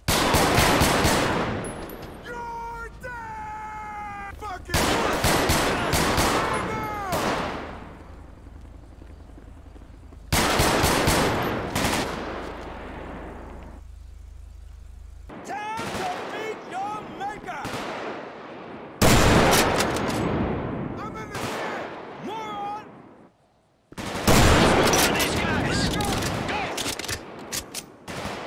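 Loud gunshots bang out one after another, each followed by a long echoing boom.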